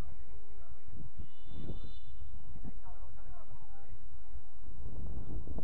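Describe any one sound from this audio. Men shout to each other across an outdoor field, at a distance.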